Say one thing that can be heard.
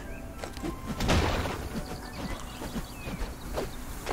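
Chopping blows thud against a wooden crate.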